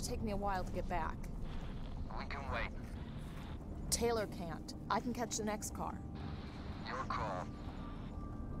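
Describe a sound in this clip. A young woman talks quietly into a close microphone.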